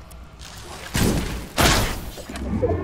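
A bow twangs as an arrow is loosed.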